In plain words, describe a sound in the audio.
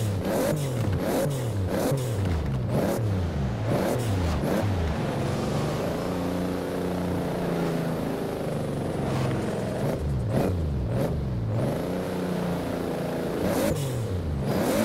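A sports car engine revs up and down repeatedly, close by.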